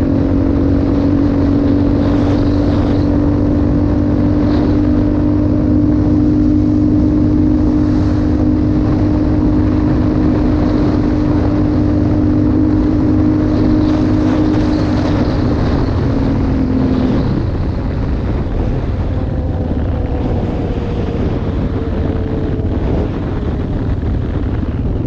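Wind buffets the microphone steadily.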